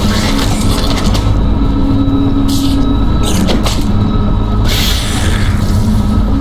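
Heavy boots thud on crunchy debris.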